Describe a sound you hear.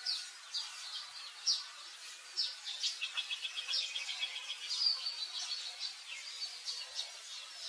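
A baby monkey squeals and cries in high, shrill bursts close by.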